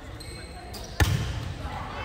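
A volleyball is struck hard with a sharp smack in a large echoing gym.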